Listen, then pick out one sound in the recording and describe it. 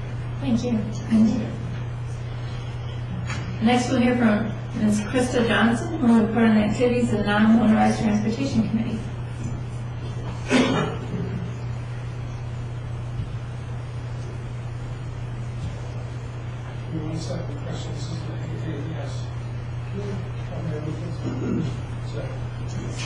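A woman speaks into a microphone in a large echoing room.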